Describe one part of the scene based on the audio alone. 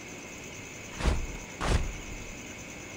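Wings beat in two heavy flaps.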